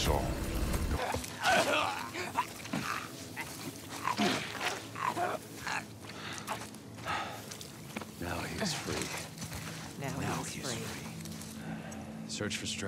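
Ferns rustle as a person crawls through them.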